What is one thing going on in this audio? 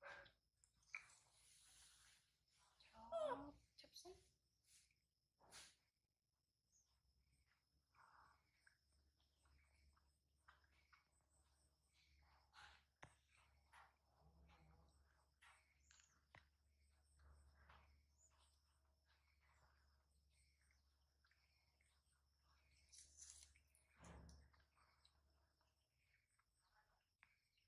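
Lychee shells crackle softly as they are peeled by hand.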